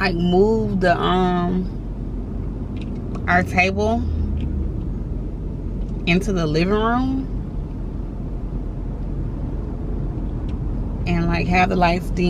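A young woman talks animatedly close by, in bursts with pauses.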